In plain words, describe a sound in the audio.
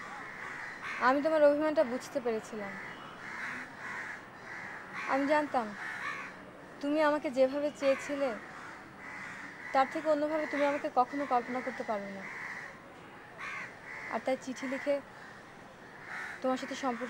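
A young woman speaks calmly and close by, in short phrases.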